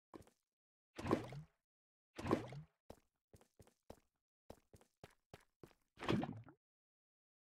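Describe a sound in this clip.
A bucket scoops up lava with a slurping gulp.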